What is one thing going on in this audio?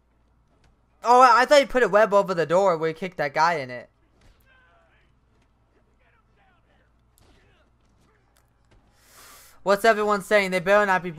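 A young man talks loudly and excitedly, close to a microphone.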